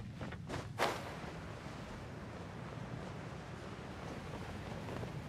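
Wind rushes steadily past during a glide.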